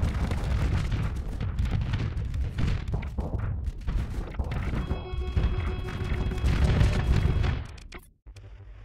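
Laser blasts and explosions boom in a battle.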